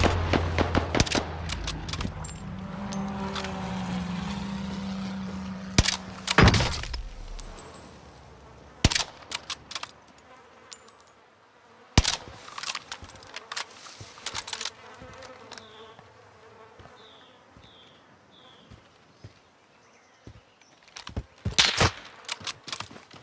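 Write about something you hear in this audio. Gunshots crack and boom with loud echoes.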